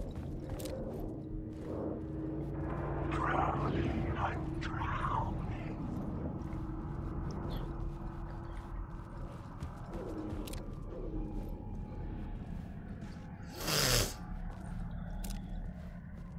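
Gunshots crack in a game.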